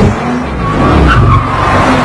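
Small car engines rev as cars drive.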